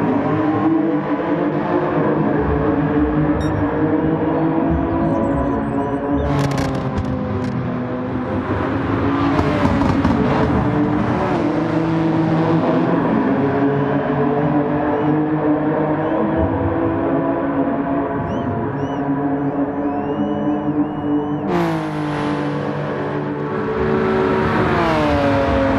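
A racing car engine roars loudly, revving up and dropping as gears shift.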